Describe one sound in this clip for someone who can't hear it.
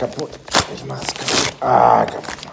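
Cloth rustles close by.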